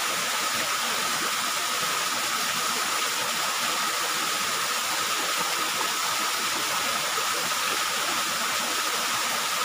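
A small waterfall splashes steadily into a pool close by.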